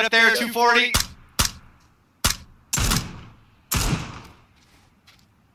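A rifle fires several loud, sharp shots that echo briefly.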